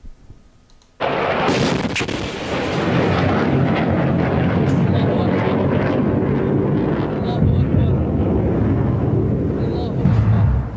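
A loud blast and roaring fire play through a television speaker.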